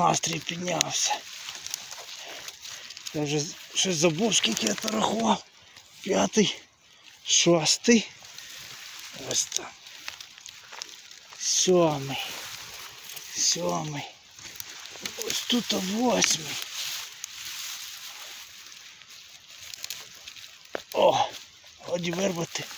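Dry grass and leaves rustle as hands push through them.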